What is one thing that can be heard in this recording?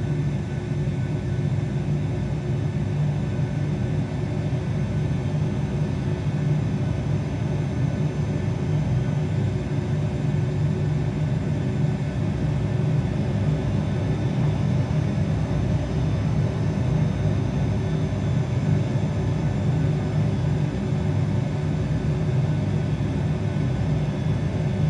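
Jet engines rumble steadily at a low idle through loudspeakers.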